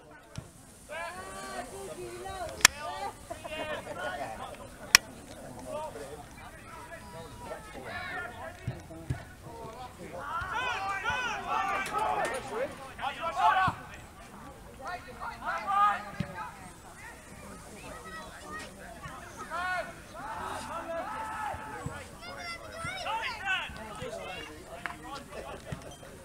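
Men shout to one another outdoors on a football pitch.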